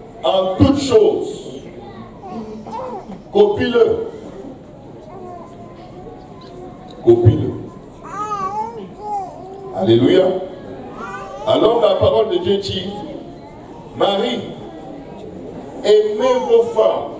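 A man speaks with animation into a microphone over loudspeakers in a large echoing hall.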